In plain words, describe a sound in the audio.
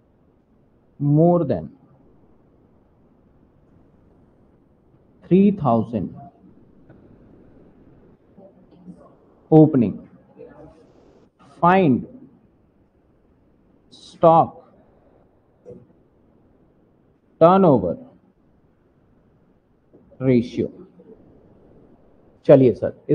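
A man speaks calmly in short phrases into a close microphone, with pauses between.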